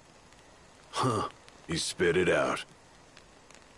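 Another man speaks up firmly, close by.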